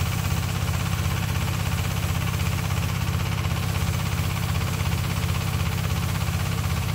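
A high-pressure spray nozzle hisses steadily.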